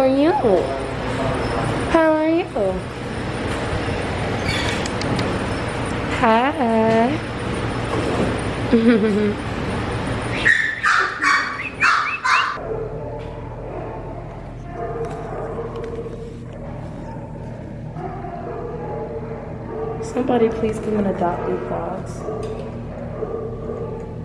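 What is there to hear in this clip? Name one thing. Dogs bark repeatedly in an echoing room.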